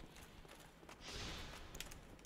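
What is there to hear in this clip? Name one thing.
A heavy weapon whooshes through the air.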